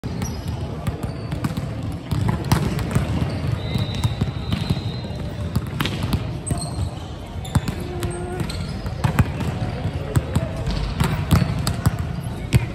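Volleyballs thump as players hit them in a large echoing hall.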